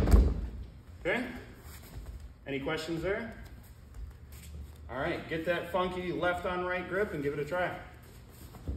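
A young man speaks calmly to listeners in a large echoing hall.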